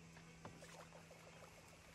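Poker chips click together on a table.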